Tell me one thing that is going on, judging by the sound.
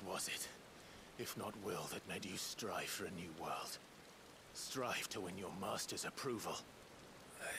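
A young man speaks calmly and coldly, close by.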